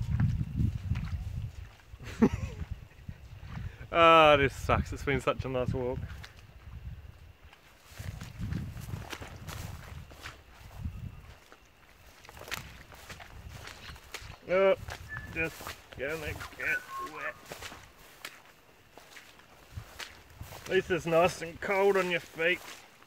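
Footsteps swish through long dry grass.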